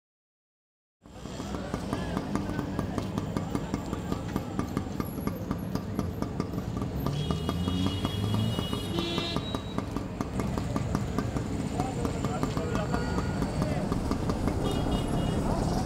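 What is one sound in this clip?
Street traffic rumbles in the background outdoors.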